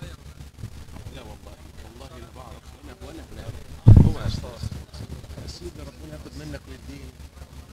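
Several men talk close by at once.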